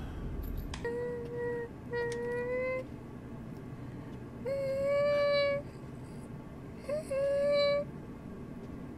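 A young woman hums a short tune into a microphone.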